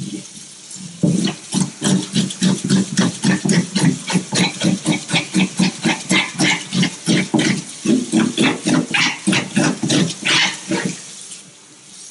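A knife scrapes scales off a fish in quick, rhythmic strokes.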